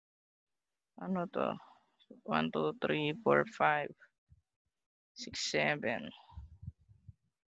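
A woman speaks calmly into a microphone.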